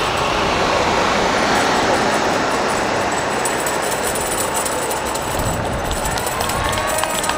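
A large vehicle drives past with a low engine rumble.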